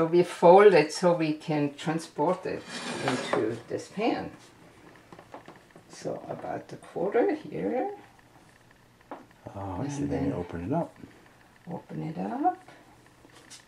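A middle-aged woman talks calmly and explains nearby.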